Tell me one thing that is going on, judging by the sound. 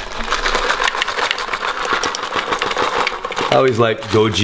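Dry nuts and berries rattle and patter as they pour from a bag into a plastic bowl.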